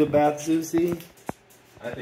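A dog's claws click on a hard floor.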